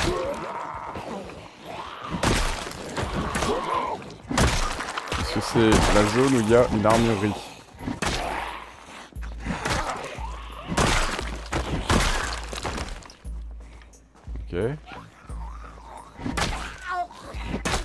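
Heavy blows thud as weapons strike zombies.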